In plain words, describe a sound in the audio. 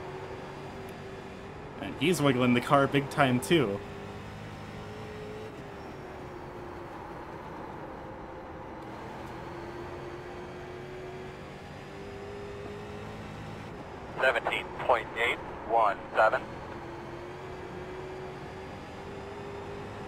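A race car engine drones steadily, its pitch rising and falling gently.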